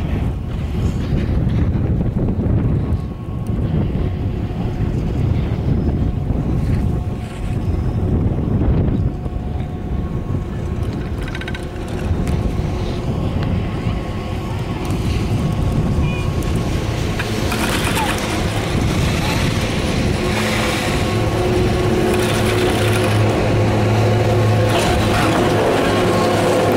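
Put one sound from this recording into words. Wind rushes past in gusts outdoors.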